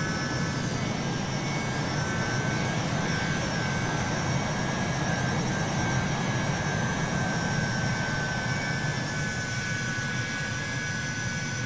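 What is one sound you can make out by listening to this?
A jet engine roars steadily with a high whine.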